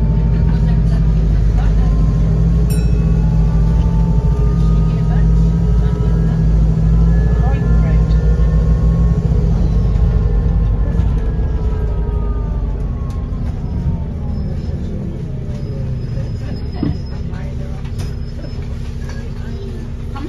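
A bus engine rumbles and whines as the bus drives along.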